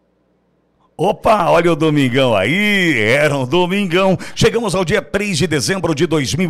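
A middle-aged man speaks with animation into a microphone close by.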